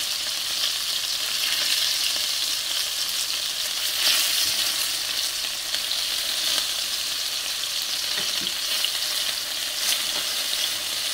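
Meatballs are turned over in a pan with soft taps.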